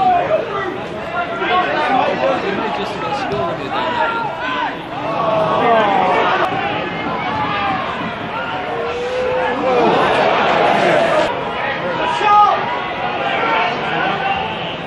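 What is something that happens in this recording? A crowd of spectators chatters, cheers and chants outdoors.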